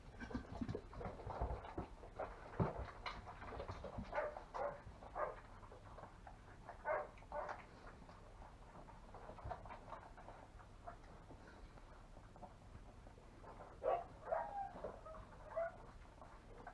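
Newborn puppies squeak and whimper close by.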